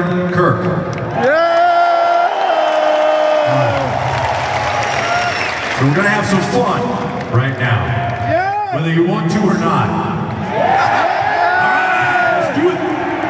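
A male singer sings through a microphone.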